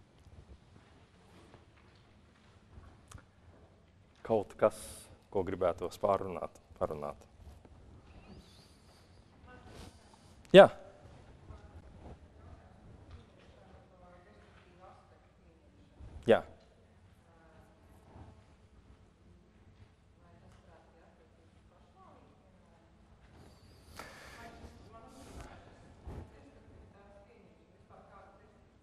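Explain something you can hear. A man speaks calmly to an audience through a microphone.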